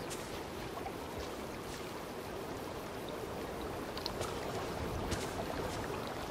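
Soft footsteps brush through grass.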